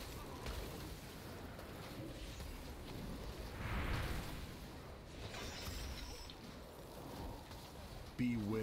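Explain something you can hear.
Magic spells whoosh and crackle in a video game battle.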